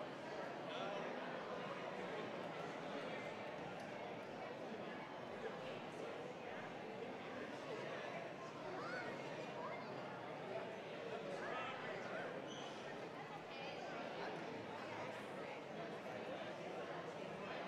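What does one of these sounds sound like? A large crowd of men and women chatters and murmurs all at once in a big echoing hall.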